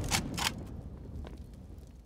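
A rifle fires shots.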